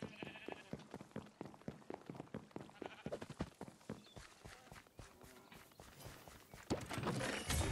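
Footsteps tap quickly and steadily on wooden boards.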